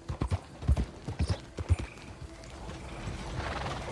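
Wagon wheels rattle past on the road.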